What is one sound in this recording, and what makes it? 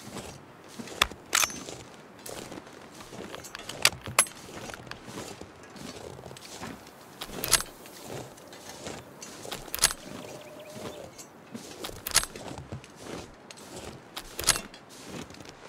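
A rifle bolt clicks and clacks as cartridges are loaded one by one.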